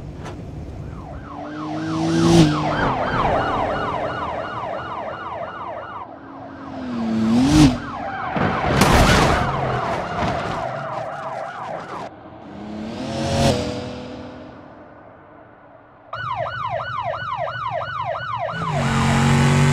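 Police sirens wail with a fast, rising and falling whoop.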